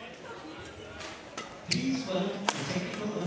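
A racket smacks a shuttlecock in quick exchanges.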